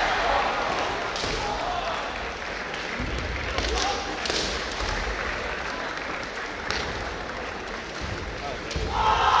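Fencers shout sharp, loud cries that echo through a large hall.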